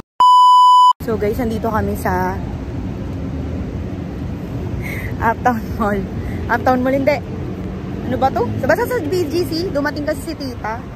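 A young woman talks animatedly close to a microphone.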